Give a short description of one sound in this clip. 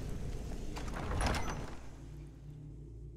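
A heavy stone door grinds open.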